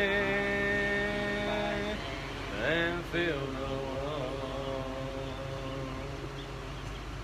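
A young man sings nearby.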